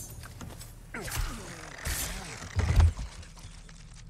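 Heavy thuds sound as a body drops down onto wooden boards.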